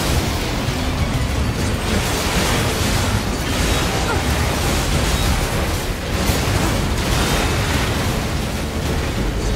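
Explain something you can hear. Explosions boom and crackle in quick succession.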